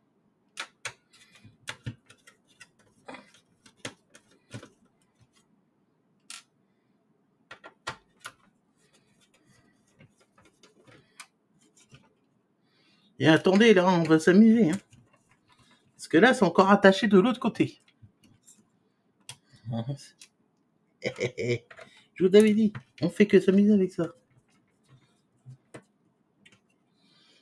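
Plastic parts click and tap softly.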